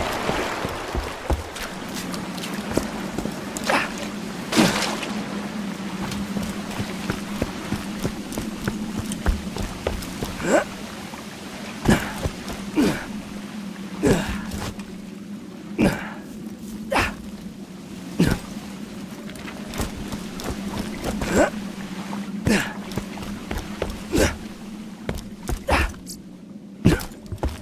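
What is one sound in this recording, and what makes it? Footsteps thud on wooden boards and rocky ground at a steady walking pace.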